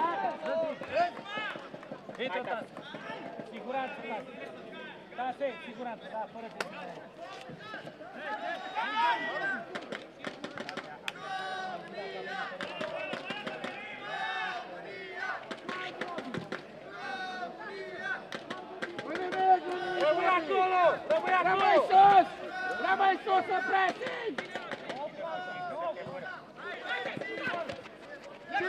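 A ball is kicked with dull thuds on a pitch.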